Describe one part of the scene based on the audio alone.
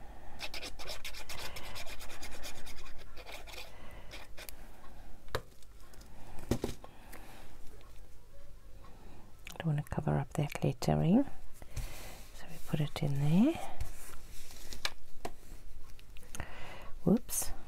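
Paper rustles and crinkles as it is handled and pressed down.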